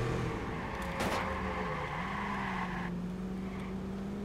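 Tyres screech as a car skids around a corner.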